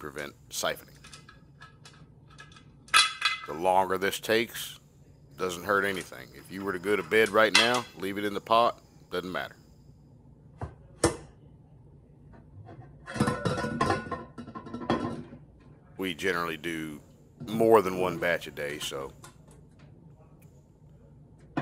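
A metal pot lid clicks and clanks as it is twisted into place.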